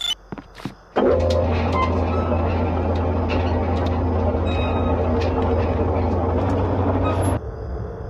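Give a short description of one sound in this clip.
Ferris wheel machinery hums steadily as a gondola rises.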